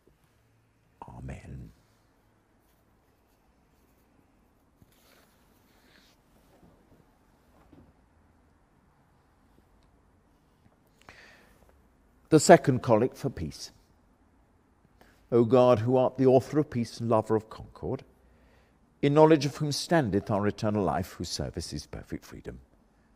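An elderly man reads aloud slowly and calmly, close by, in a softly echoing room.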